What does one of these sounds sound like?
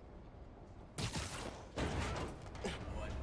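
A web line zips sharply with a quick whoosh.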